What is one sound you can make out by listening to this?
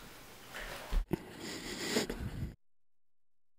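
A floor applicator scrapes along a wooden floor.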